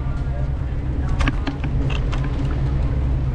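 Footsteps tap on pavement nearby.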